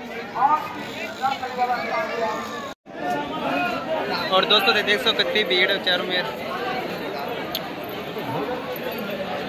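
A crowd murmurs all around outdoors.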